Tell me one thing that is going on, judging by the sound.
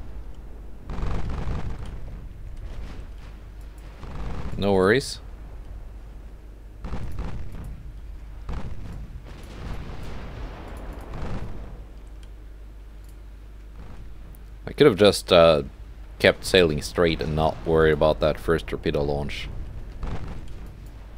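Ship guns fire with deep booms.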